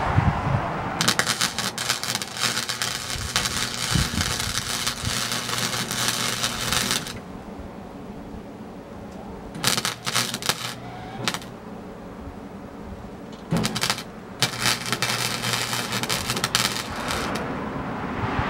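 An arc welder crackles and sizzles in bursts.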